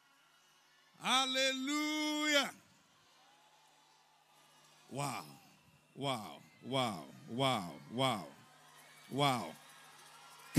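A large crowd sings and chants together.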